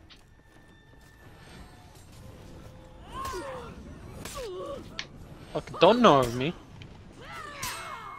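Steel swords clash and ring.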